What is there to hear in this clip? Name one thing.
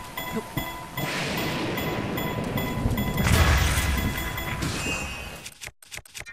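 Wind rushes loudly past during a fast glide.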